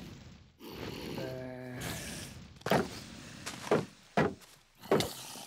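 A zombie groans nearby.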